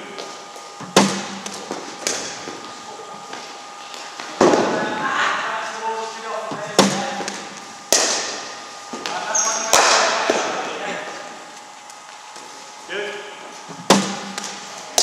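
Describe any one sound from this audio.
A cricket bat strikes a ball with a sharp crack, echoing in a large hall.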